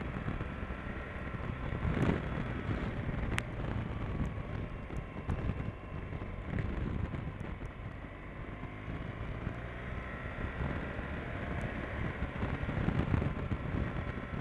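Wind buffets loudly against the rider's helmet.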